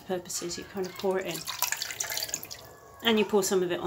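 Water pours and splashes into a pot.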